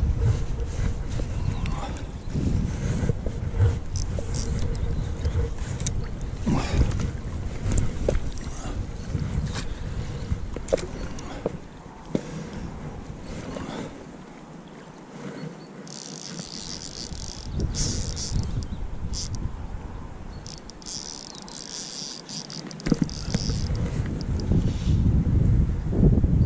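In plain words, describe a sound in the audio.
A shallow river ripples and gurgles over stones close by.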